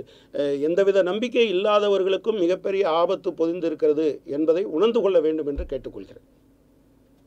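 A middle-aged man speaks with animation close to a microphone.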